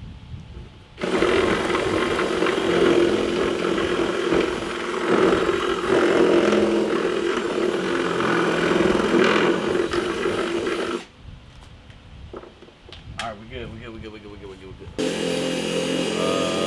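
A power drill whirs steadily as it bores into a hard panel.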